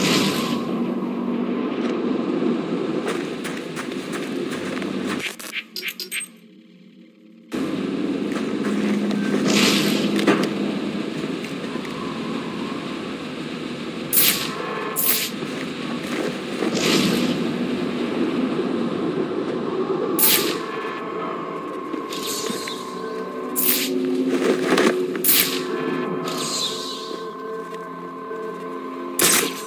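Strong wind gusts steadily outdoors.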